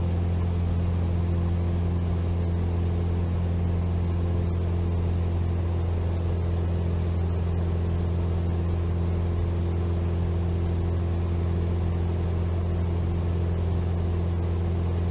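A small propeller plane's engine drones steadily from inside the cabin.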